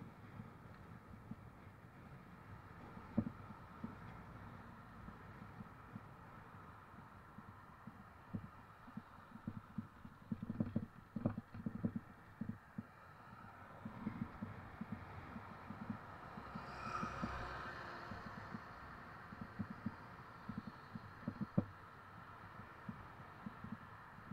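Cars drive by on a road.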